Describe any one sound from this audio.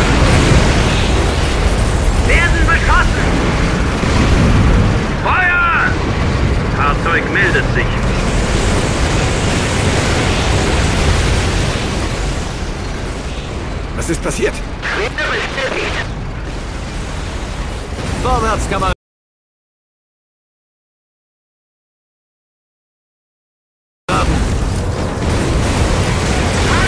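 Tank engines rumble steadily.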